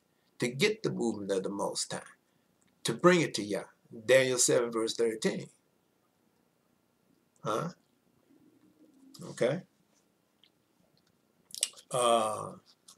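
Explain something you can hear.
An older man speaks calmly and with emphasis, close to a microphone, with pauses between phrases.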